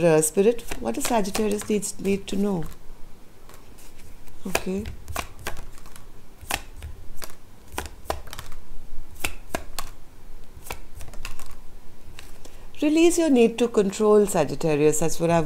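Playing cards riffle and snap as a deck is shuffled by hand.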